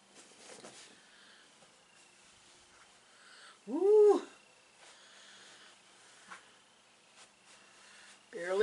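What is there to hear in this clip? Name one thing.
Fabric rustles as it is smoothed on a table.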